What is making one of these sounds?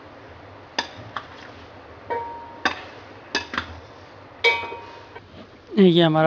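A spatula scrapes and clinks against a glass bowl.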